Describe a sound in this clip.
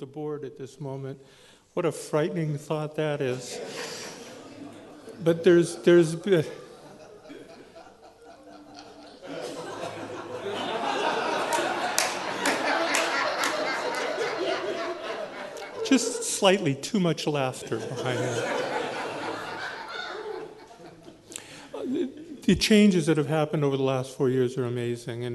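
A woman speaks emotionally into a microphone.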